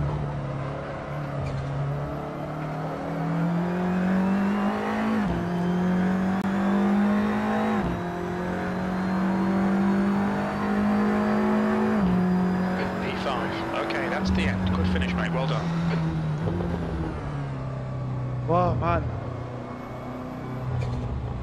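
A racing car engine roars, rising in pitch through each gear and dropping sharply at each gear change.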